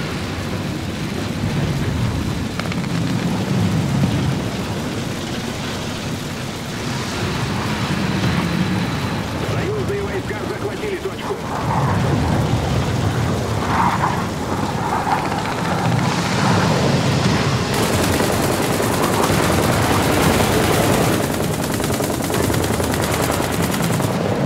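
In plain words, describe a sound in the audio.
Flames crackle on a burning tank.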